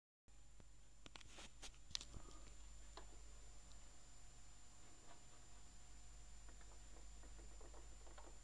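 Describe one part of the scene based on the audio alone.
Clicks and pops crackle from a record's surface.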